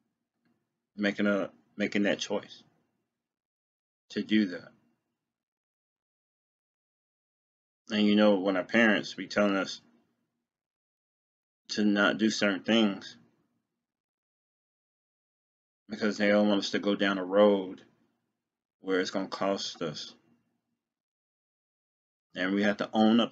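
A man speaks calmly and close up, in short phrases with pauses.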